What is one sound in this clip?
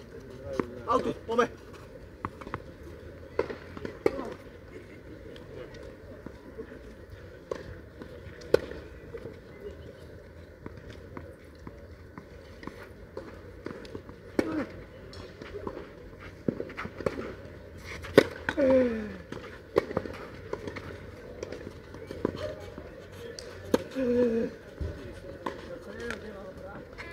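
A tennis ball is struck sharply with a racket, again and again, outdoors.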